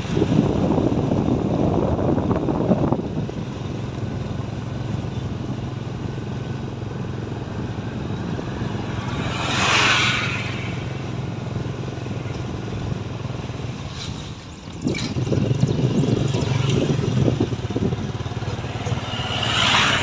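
A vehicle engine hums steadily as it drives along a road.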